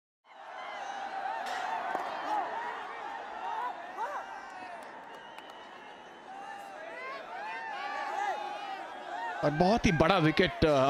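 Horns and whistles blare from a stadium crowd.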